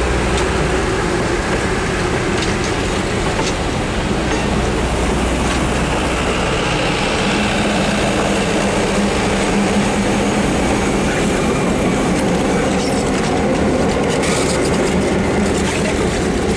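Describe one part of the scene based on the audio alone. A passenger train rumbles past close by on the rails.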